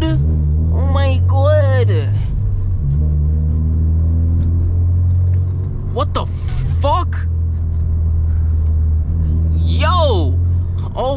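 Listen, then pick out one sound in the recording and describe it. A car engine drones low and steady from inside the car.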